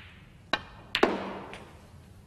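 Snooker balls clack together.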